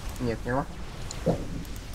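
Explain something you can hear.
Energy weapons zap and crackle in a battle.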